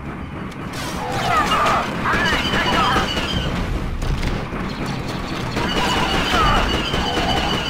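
Blaster shots fire and zap in quick bursts.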